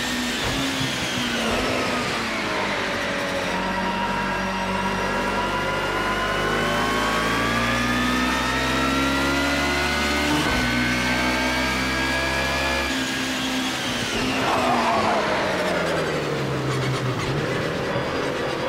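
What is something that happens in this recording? A racing car engine roars, rising and falling in pitch as it shifts gears.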